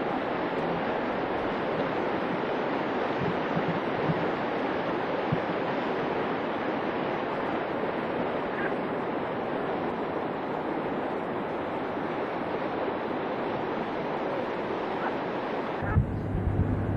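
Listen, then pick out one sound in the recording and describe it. A rushing river roars steadily nearby.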